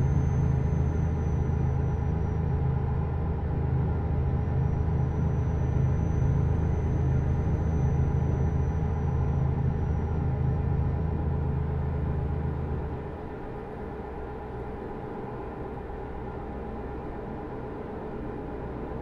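A truck engine hums steadily and then eases off.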